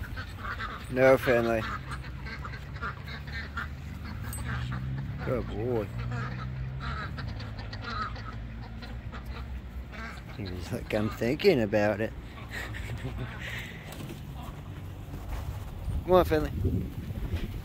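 Ducks quack a short way off.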